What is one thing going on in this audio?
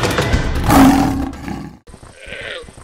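A lion roars loudly.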